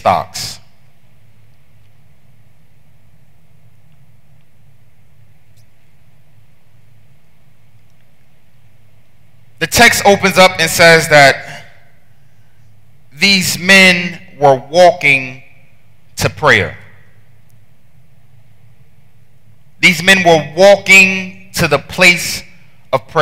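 A man preaches with animation into a headset microphone, heard through loudspeakers in a large hall.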